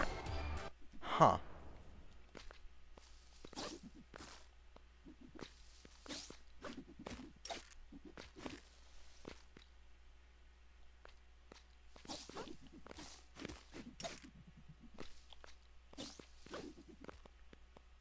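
Short electronic blips sound again and again as a small character jumps.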